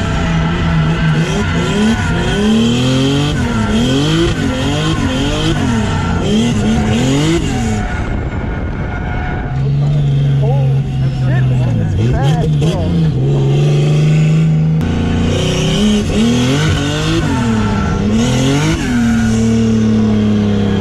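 A car engine roars close by, revving up and down sharply.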